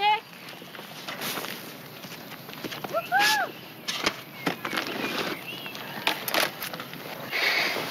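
A bicycle rattles and clicks as a man leans it against a tree.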